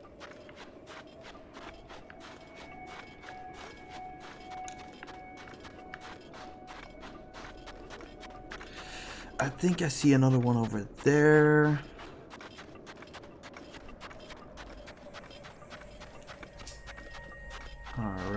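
Footsteps crunch quickly through soft sand.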